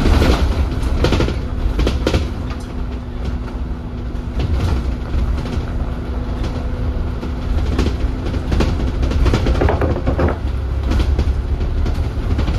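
Rain and wind buffet against a moving vehicle.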